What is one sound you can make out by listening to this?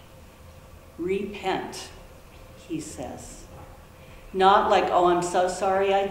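A woman speaks calmly and with expression, heard in a room with a light echo.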